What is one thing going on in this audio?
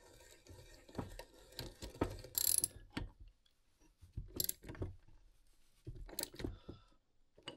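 Metal wrenches clink and clatter against each other.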